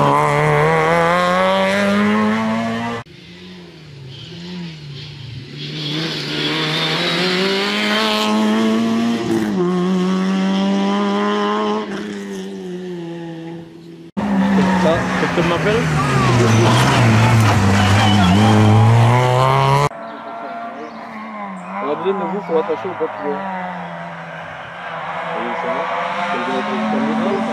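A rally car engine roars and revs hard as the car races past.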